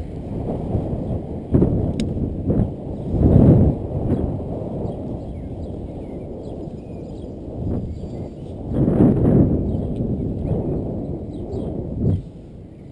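Wind rushes and buffets loudly in gusts outdoors.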